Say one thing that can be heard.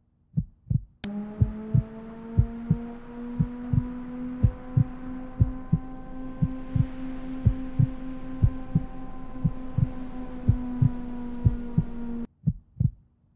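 A car engine hums as a car drives slowly closer.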